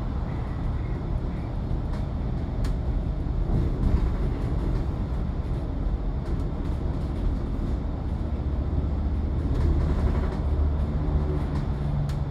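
Tyres roll over the road with a steady hum.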